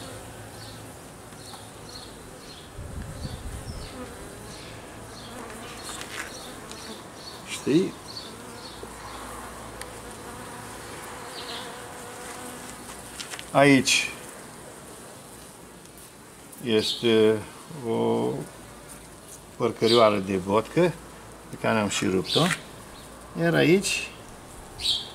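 Honeybees buzz in a steady hum close by.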